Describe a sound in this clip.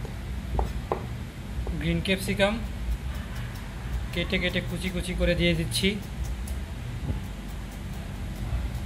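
A knife chops on a cutting board with quick taps.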